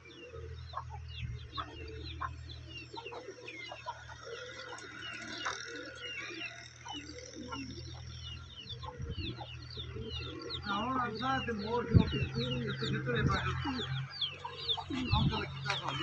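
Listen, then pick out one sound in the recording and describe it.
Pigeons coo softly nearby.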